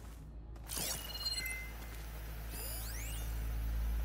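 A heavy metal door slides open with a mechanical whir.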